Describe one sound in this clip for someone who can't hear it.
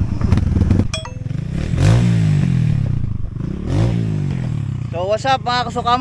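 A dirt bike engine revs up and down nearby.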